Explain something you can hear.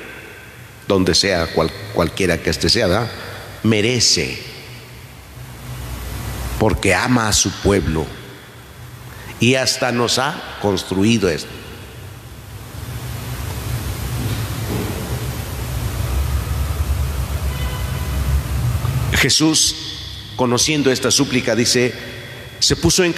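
A man speaks calmly through a microphone in an echoing hall, with long pauses.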